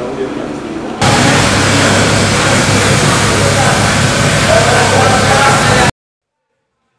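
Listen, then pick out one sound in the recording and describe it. A high-pressure water spray hisses against a car.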